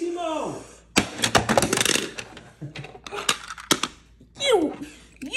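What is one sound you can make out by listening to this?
A hand knocks and rattles plastic toys against a wooden floor.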